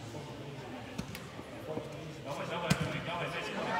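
A ball is kicked with a thud in a large echoing hall.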